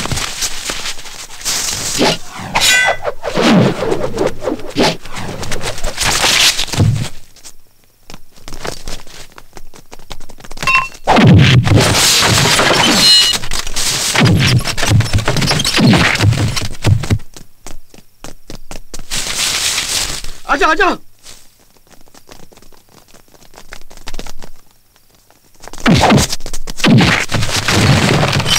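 Punches and kicks thud in a fight.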